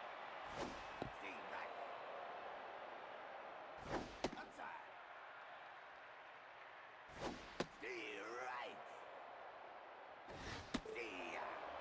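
A baseball smacks sharply into a catcher's mitt several times.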